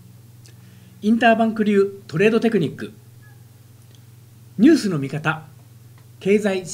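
A middle-aged man speaks calmly and close to a microphone, in short phrases with pauses.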